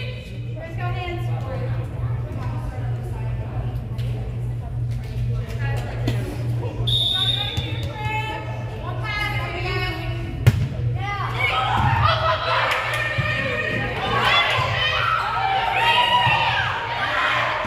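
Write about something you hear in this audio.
Young women call out to each other in an echoing gym.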